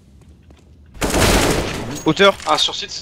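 Rifle shots ring out in a quick burst.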